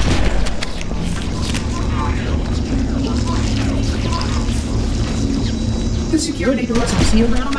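A man talks casually into a headset microphone.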